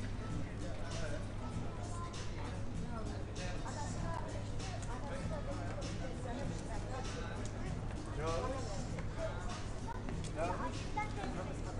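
Men and women chat nearby on a busy street.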